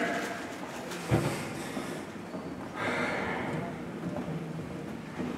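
Footsteps walk across a wooden stage.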